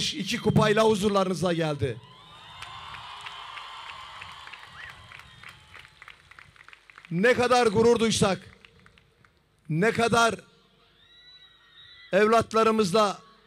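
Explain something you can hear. An elderly man speaks with animation into a microphone over a loudspeaker.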